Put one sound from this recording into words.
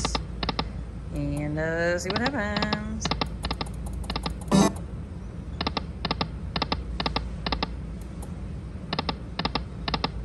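Slot machine reels stop with quick chiming beeps.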